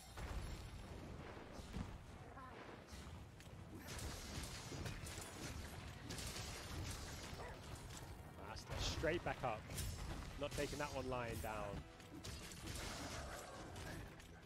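Heavy weapon strikes and impacts thud repeatedly.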